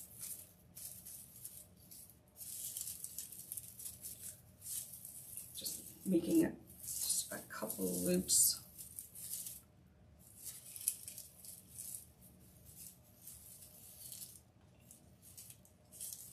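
Dry raffia rustles and crinkles as hands twist and tie it.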